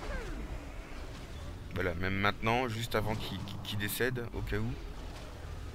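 A magical spell whooshes and shimmers.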